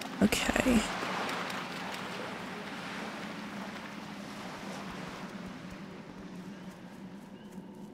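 Footsteps patter on sand.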